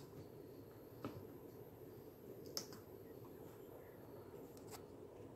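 A sampler's buttons click faintly under a finger.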